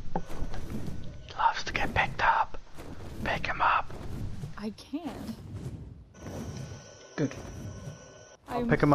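A dragon breathes fire with a roaring whoosh.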